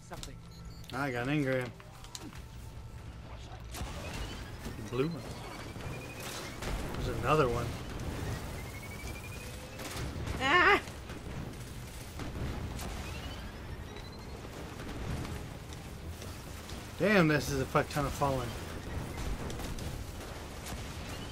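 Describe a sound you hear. Guns fire in rapid bursts with sharp energy blasts.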